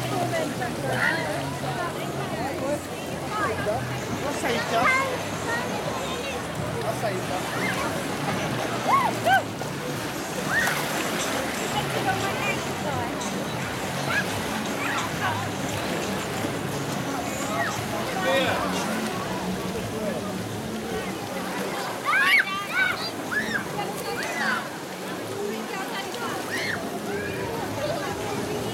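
A crowd of people chatters and shouts with children's voices all around, outdoors.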